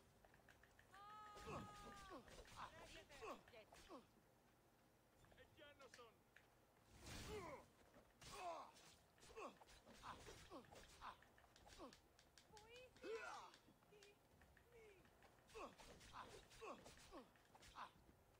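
Swords clash and strike in a close fight.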